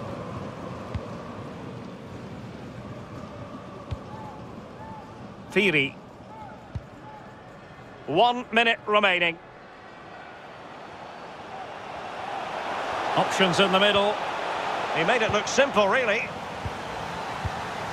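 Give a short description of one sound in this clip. A football is kicked with soft thuds.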